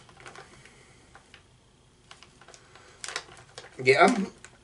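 A plastic packet crinkles in a man's hands.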